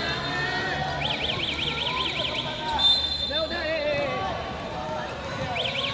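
A referee's whistle trills shrilly.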